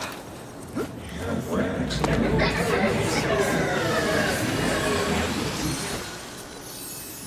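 Magical energy whooshes and shimmers loudly.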